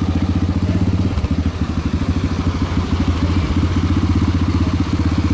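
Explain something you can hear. A motorcycle engine idles with a rapid, steady putter close by.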